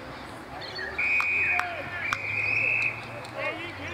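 A referee's whistle blows in two sharp blasts.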